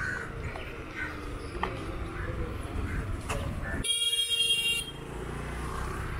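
Motor scooters pass by on the road.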